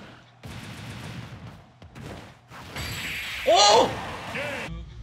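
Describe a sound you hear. Fiery blasts burst and crackle, ending in one big boom.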